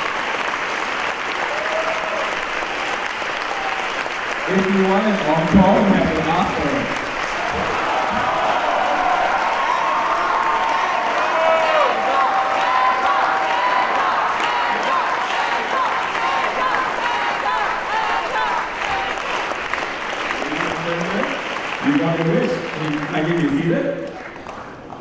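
A symphony orchestra plays loudly in a large hall.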